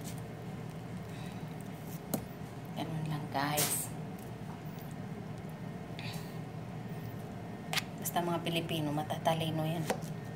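A knife cuts through melon rind with soft crunches.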